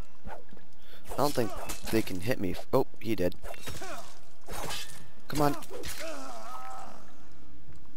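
A man shouts and groans in pain.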